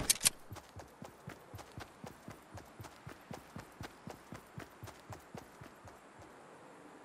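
Footsteps thud quickly on grass as a game character runs.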